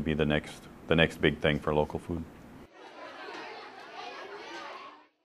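Many children chatter in a large echoing room.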